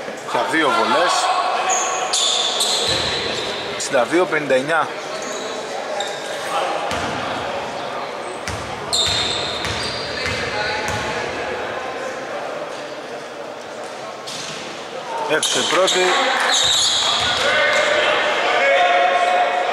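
Players call out to each other loudly in an echoing hall.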